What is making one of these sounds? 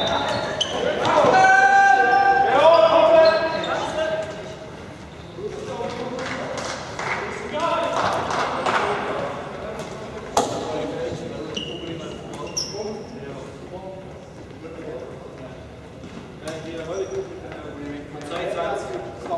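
Shoes squeak on the hall floor.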